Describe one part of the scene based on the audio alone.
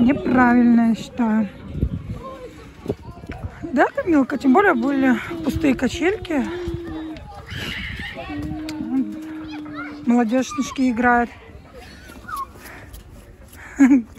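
A young girl talks and squeals in a high, lively voice close by.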